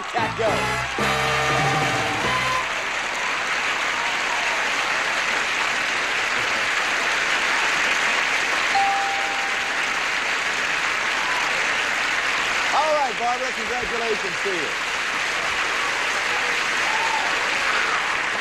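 A large studio audience applauds and cheers loudly.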